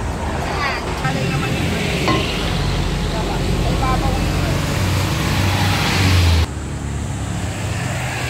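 A knife scrapes and chops meat on a wooden board.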